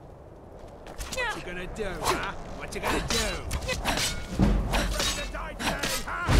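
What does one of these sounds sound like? Blades clash and strike flesh in a fight.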